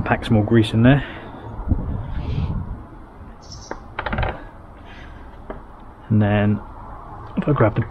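Small metal rings clink and tap on a wooden board.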